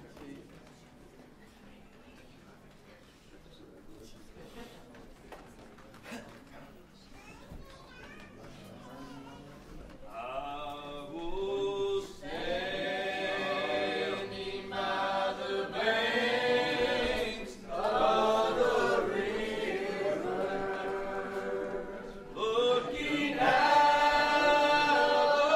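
A crowd of men and women chat and murmur in a room.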